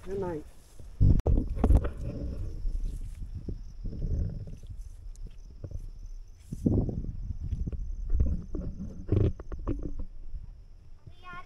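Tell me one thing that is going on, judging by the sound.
Footsteps squelch and rustle through wet grass and mud.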